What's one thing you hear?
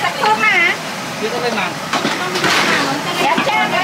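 A metal pot clanks.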